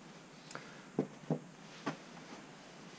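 Plastic objects knock against a plastic tray.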